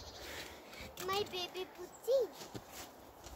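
A young child speaks briefly in a high voice.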